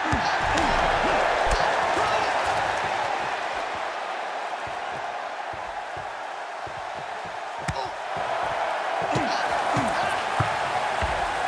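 Blows land with sharp slaps.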